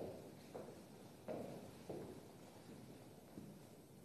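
Footsteps sound softly on a hard floor in a large echoing room.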